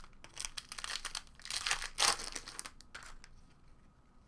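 A foil wrapper crinkles and tears as it is torn open.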